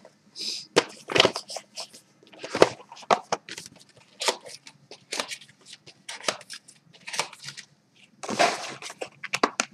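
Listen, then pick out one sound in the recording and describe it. A cardboard box rustles and scrapes as hands open it.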